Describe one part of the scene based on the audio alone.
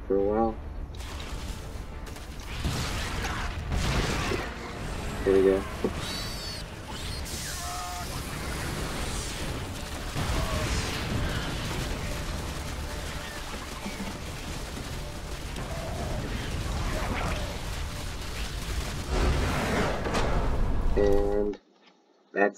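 Gunfire and explosions rattle and boom in a busy battle.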